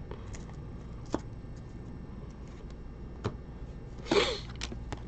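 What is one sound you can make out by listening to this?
Trading cards click and rustle softly as hands handle them.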